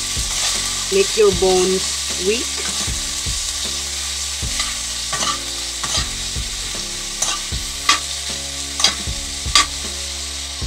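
A metal spoon clinks lightly against a small pot.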